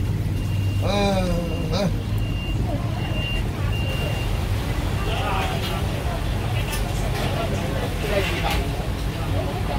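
A knife slices through crisp skin.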